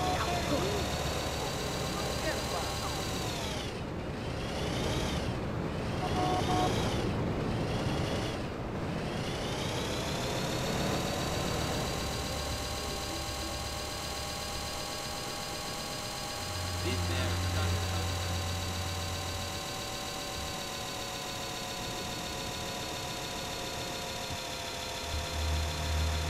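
A toy radio-controlled car's electric motor whines as it drives.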